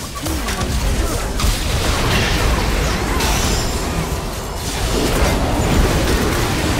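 Magic spells burst and crackle in a busy battle.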